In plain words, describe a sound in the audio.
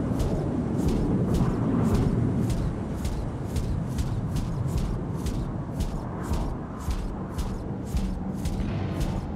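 Heavy metal footsteps clank in a steady, quick rhythm.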